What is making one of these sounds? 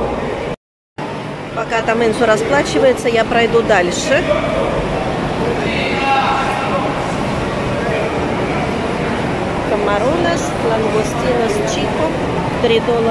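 Men and women chatter nearby in a large echoing hall.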